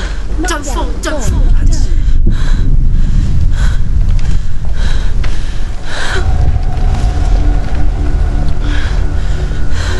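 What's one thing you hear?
Wooden beams creak and knock as someone climbs them.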